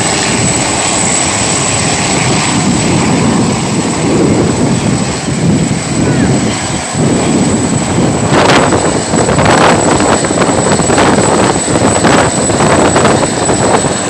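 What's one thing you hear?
A helicopter's rotor thumps loudly and rapidly overhead.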